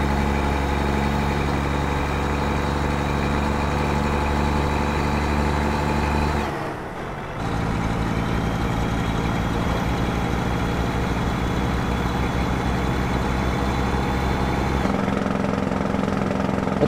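A truck engine drones steadily, dipping briefly during a gear change.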